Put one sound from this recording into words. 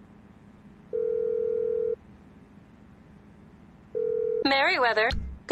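A phone rings with a steady tone through its earpiece.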